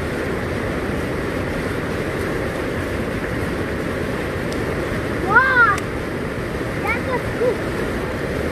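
A river rushes loudly over rocks.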